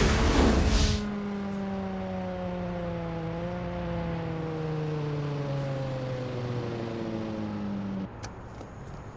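A car engine hums steadily and slowly winds down.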